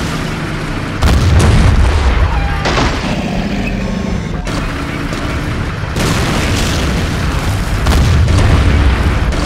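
A tank cannon fires with a deep boom.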